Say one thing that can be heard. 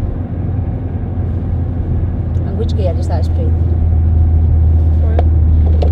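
A car engine hums steadily and grows a little louder.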